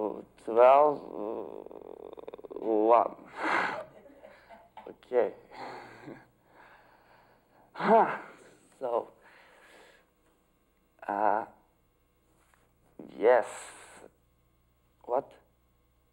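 A young man talks animatedly into a phone, in loud excited bursts.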